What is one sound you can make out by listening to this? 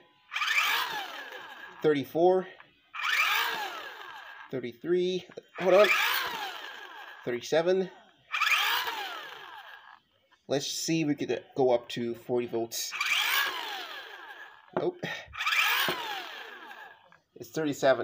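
A small electric motor whirs in short bursts, then winds down each time.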